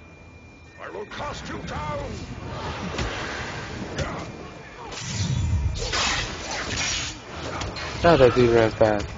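Game combat effects clash and burst in quick bursts.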